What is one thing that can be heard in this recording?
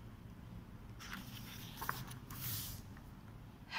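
A page of a book is turned with a soft paper rustle.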